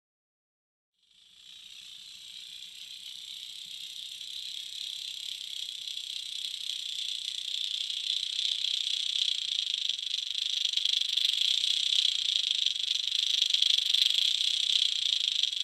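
A fishing lure rattles steadily underwater, slowly growing louder.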